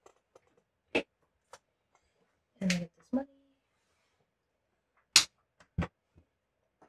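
Game pieces tap and click on a tabletop.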